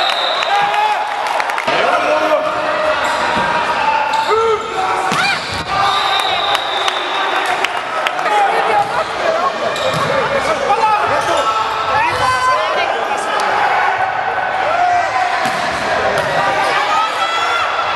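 Players shout and call out in a large echoing hall.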